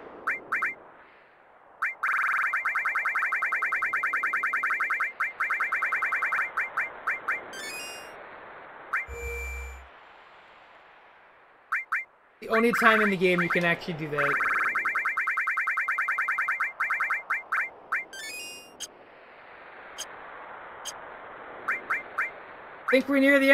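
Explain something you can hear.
Menu cursor blips tick rapidly as a list scrolls.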